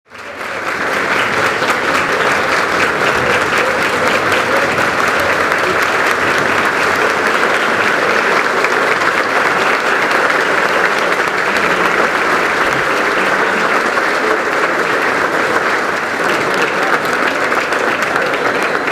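A large crowd claps steadily in an echoing hall.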